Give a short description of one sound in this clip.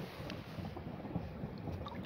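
A hand splashes in shallow water.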